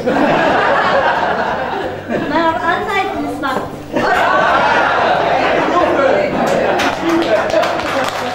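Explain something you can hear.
A man and a woman laugh heartily.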